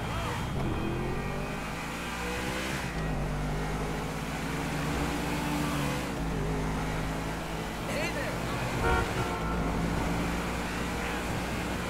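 A sports car engine revs as it accelerates through the gears.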